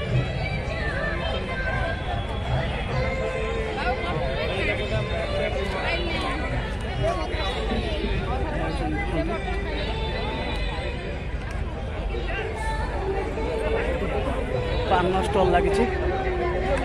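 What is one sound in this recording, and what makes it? A crowd of men and women chatter loudly all around.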